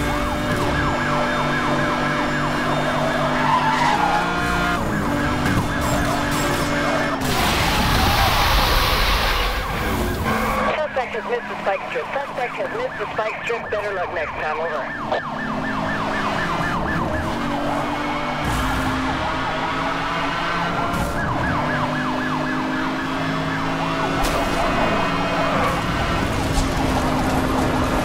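A sports car engine roars at high speed, shifting gears.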